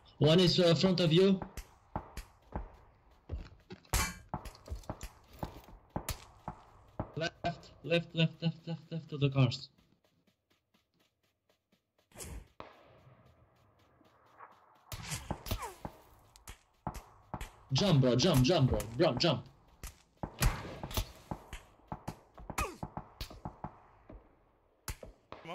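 Footsteps run quickly over dry dirt.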